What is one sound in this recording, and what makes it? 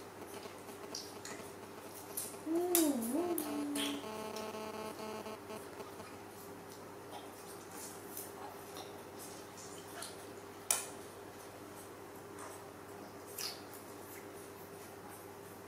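A young monkey sucks noisily on a milk bottle.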